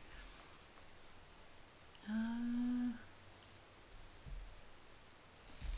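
A plastic sheet crinkles softly under a hand.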